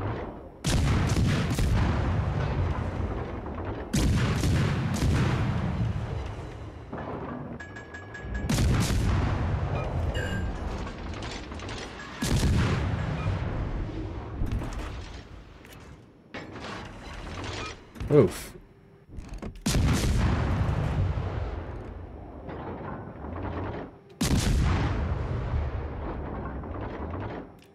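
Heavy naval guns fire in booming salvos with long rumbling echoes.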